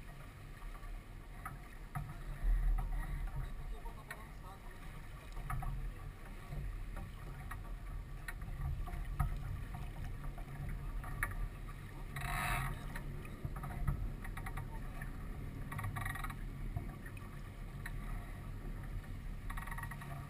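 Ropes and fittings creak and click on a sailboat.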